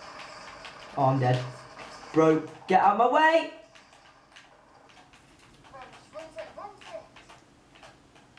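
A young man talks excitedly into a close microphone.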